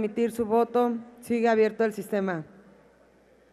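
A woman speaks briefly through a loudspeaker in a large hall.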